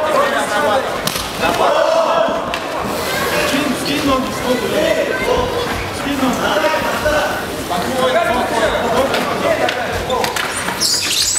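A crowd cheers and shouts in a large open space.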